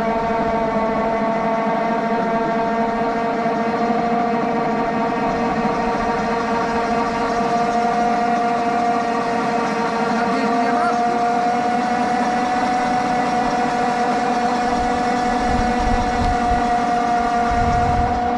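A quad bike engine idles close by with a steady hum.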